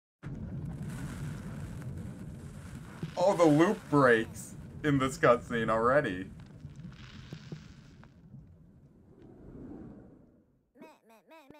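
Magical sparkles whoosh and shimmer as they swirl upward.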